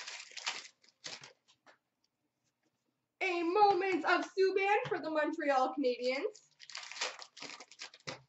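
Trading cards and a foil pack rustle and crinkle in hands.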